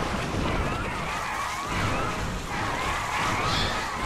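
Explosions boom in quick bursts.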